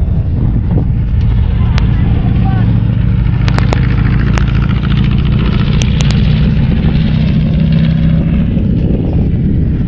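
A buggy engine hums steadily as it drives past.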